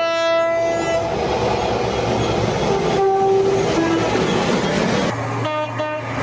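A freight train rumbles past on the rails.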